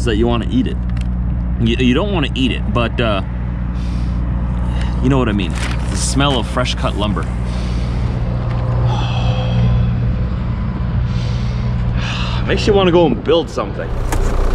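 A man talks casually and close up, outdoors.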